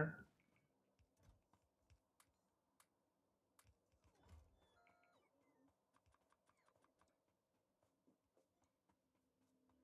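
Soft game interface clicks tick now and then.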